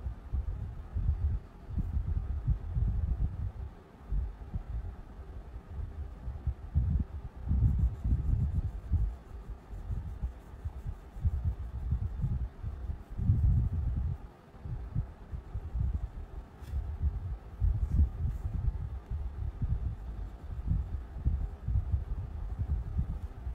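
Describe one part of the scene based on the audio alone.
A crayon scratches and rubs rapidly against paper.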